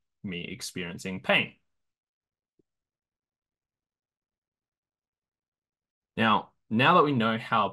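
A man speaks calmly into a microphone, heard as through an online call.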